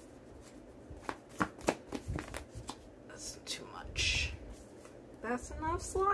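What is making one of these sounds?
A card is picked up from a cloth.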